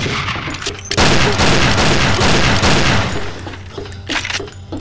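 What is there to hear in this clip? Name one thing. A pistol fires loud shots that echo.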